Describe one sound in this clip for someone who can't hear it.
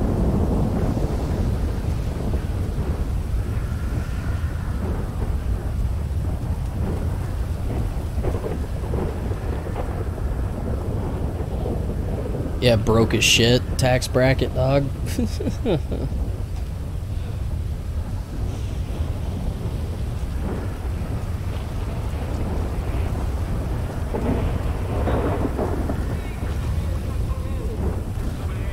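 Wind and rain roar steadily outdoors.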